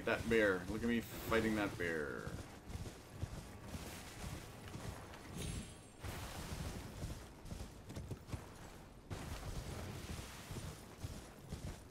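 Hooves thud softly over grass at a steady trot.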